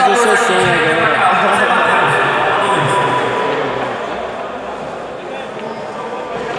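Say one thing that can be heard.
Men talk and shout excitedly in a large echoing hall.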